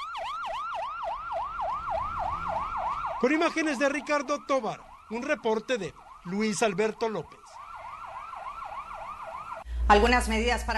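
An ambulance siren wails rapidly up and down.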